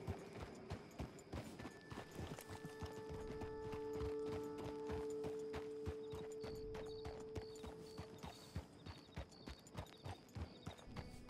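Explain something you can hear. Horse hooves clop slowly on a dirt path.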